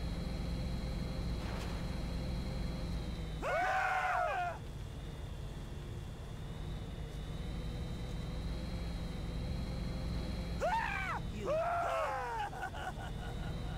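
A hover truck's engine hums steadily.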